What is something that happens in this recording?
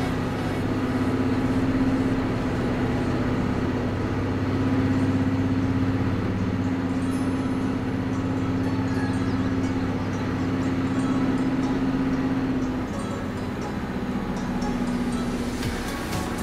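Tyres hum on a motorway.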